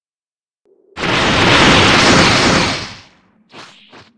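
A loud rushing energy blast roars and then fades.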